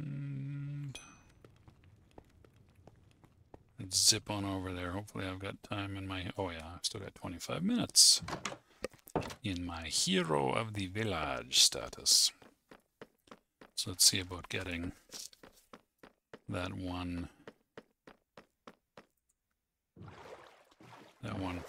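Footsteps tap on stone steps.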